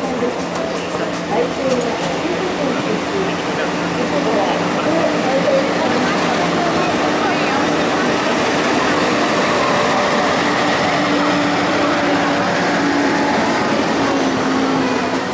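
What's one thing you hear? Heavy trucks rumble past with engines droning steadily.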